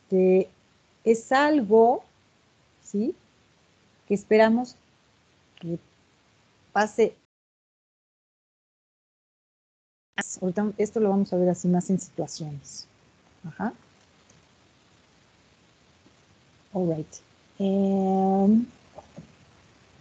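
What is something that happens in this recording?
A woman speaks slowly and clearly over an online call, with pauses.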